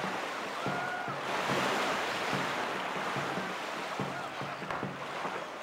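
A paddle dips into water in a quick, steady rhythm.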